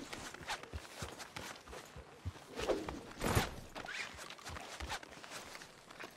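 Horse hooves pound on a muddy track at a gallop.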